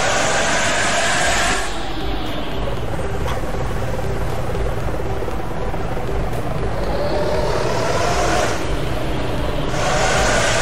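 A bus engine rumbles steadily as the bus drives along.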